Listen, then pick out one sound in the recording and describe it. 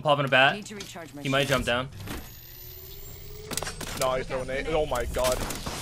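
A shield battery charges with a rising electric hum.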